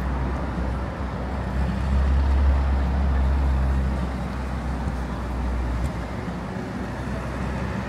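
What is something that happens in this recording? Engines hum low as vehicles pass close by.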